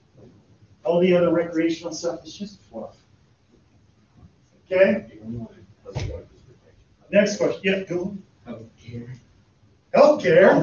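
A man speaks loudly and clearly, in short bursts with pauses.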